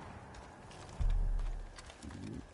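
A car door opens with a dull thud.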